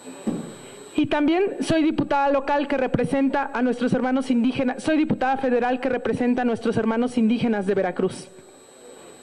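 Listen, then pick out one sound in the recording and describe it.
A young woman speaks emotionally into a microphone.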